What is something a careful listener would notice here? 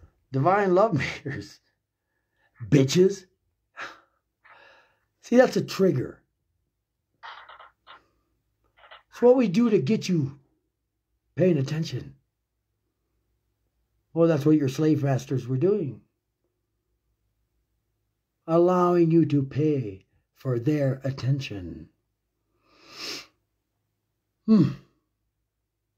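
A middle-aged man speaks calmly and close up, with pauses.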